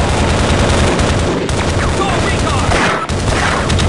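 Gunshots fire in rapid bursts close by.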